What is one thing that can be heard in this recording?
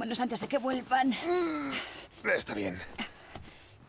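A man answers briefly in a low voice.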